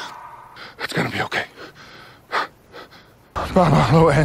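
A young man speaks in a low, intense voice.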